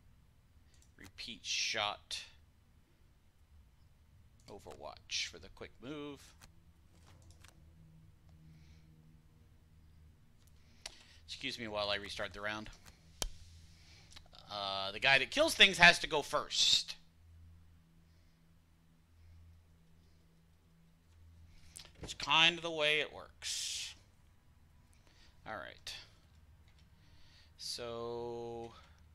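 A middle-aged man talks casually into a close microphone, in short bursts.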